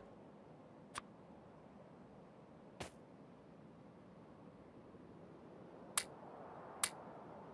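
Short sharp clicks sound as structures are placed.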